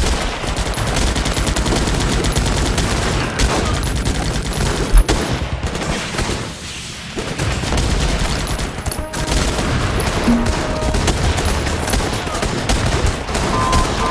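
Explosions boom and thud.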